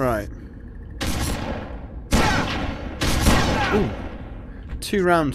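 A rifle fires loud shots that echo and fade.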